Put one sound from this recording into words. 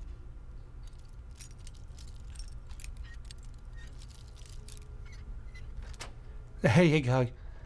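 A lock pick scrapes and clicks inside a lock.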